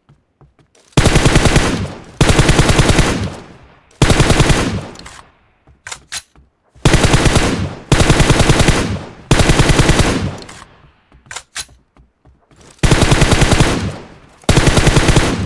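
An automatic rifle fires rapid bursts of gunshots outdoors.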